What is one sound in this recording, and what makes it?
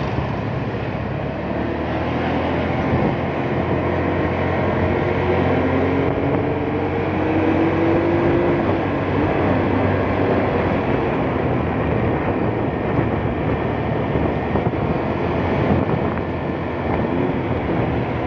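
A motorbike engine hums steadily up close while riding.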